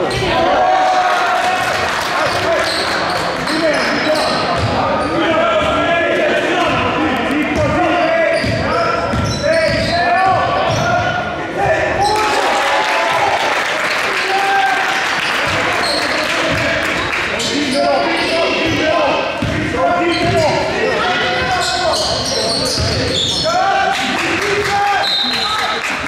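Sneakers squeak on a hard floor in a large echoing gym.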